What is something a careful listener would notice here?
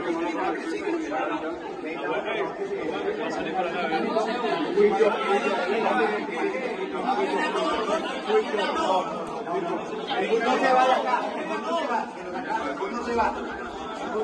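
A crowd of men talks and shouts over each other close by, echoing in a narrow hall.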